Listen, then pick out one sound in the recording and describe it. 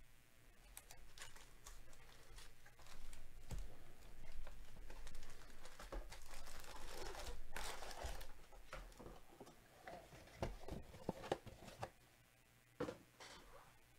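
Foil wrappers crinkle and rustle as they are handled.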